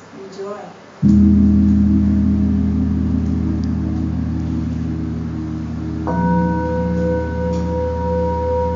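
Singing bowls ring with a deep, long, steady hum.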